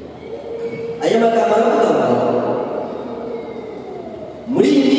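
A man sings into a microphone, heard over loudspeakers.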